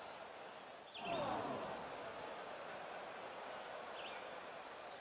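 A crowd of spectators cheers and applauds.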